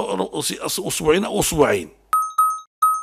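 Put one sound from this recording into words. An elderly man speaks forcefully into a microphone.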